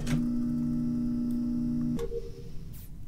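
A game's garbage chute rumbles with a steady low hum, then stops.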